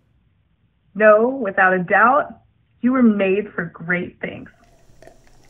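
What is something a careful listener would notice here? A woman speaks warmly and close by.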